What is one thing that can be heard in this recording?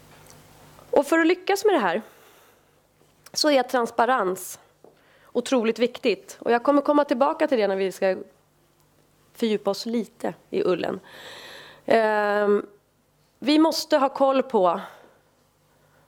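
A woman speaks calmly into a microphone, pausing between phrases.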